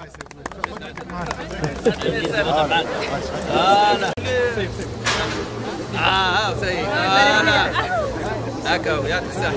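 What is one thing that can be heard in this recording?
A crowd of men and women talk and call out loudly close by.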